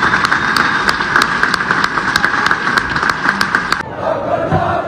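A group of people claps hands steadily.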